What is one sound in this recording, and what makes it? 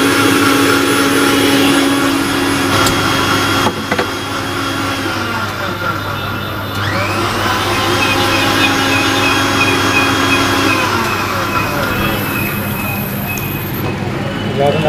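A blender whirs loudly and steadily.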